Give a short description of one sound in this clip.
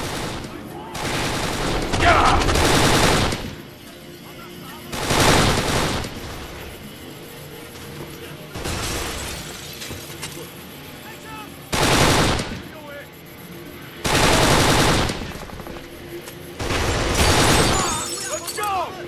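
Automatic gunfire rattles in loud, short bursts.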